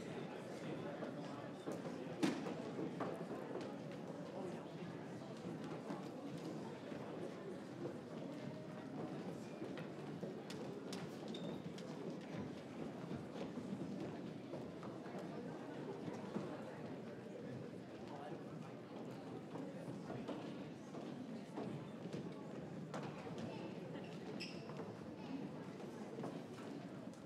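Footsteps shuffle across a wooden stage.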